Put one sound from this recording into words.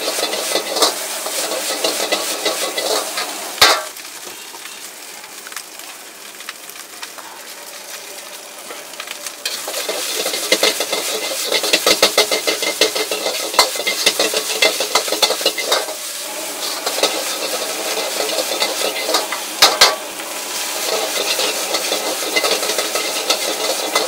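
A gas burner roars under a wok.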